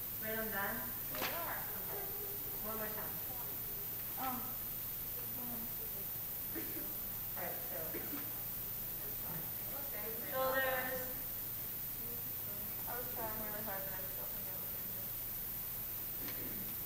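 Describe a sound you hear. A mixed choir sings softly in a large echoing hall.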